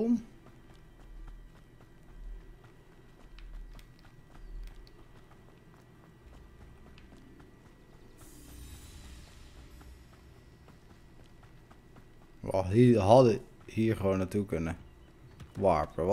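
Footsteps run softly over grass and dirt.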